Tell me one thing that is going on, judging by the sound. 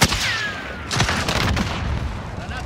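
An explosion bursts with flying debris.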